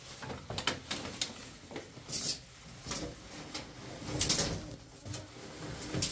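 A metal handle clinks against a bucket.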